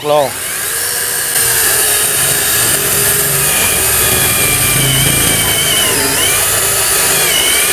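A chainsaw whines steadily as it cuts through a log.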